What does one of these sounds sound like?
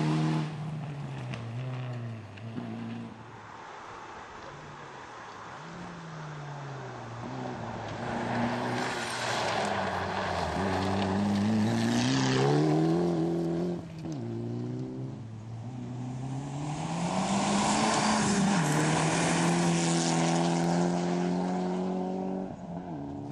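A rally car engine roars and revs hard as the car races past.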